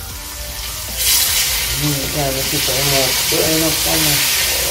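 Food sizzles as it fries in a pan.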